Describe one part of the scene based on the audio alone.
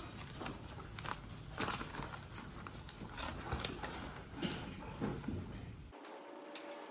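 Paper pages rustle and flap close by.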